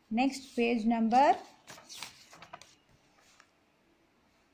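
Paper rustles as a booklet is handled.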